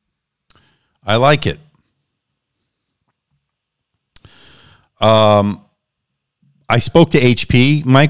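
A middle-aged man speaks close into a microphone in short bursts, with pauses between them.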